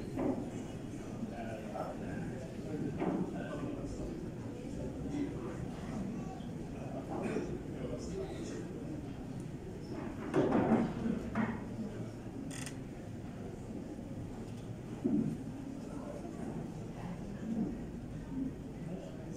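A crowd of men murmurs and talks in a large echoing hall.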